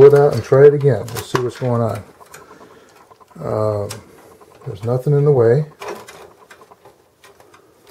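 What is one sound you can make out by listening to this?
A circuit board scrapes against a metal case as it is pulled out and put back.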